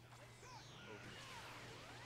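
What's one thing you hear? A powerful energy blast whooshes and bursts.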